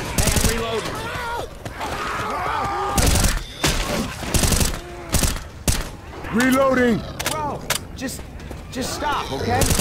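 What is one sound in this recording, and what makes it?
A rifle fires loud bursts of shots.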